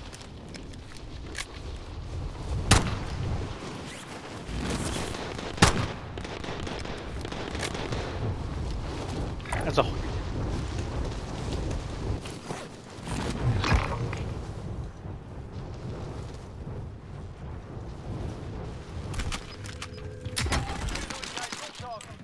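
Wind rushes loudly during a fast fall through the air.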